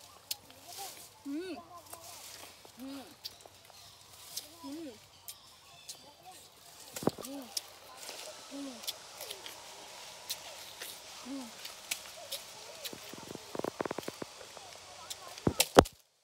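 A young woman bites into crisp fruit and chews.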